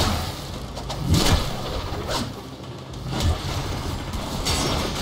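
A staff swings with sharp whooshes and hits.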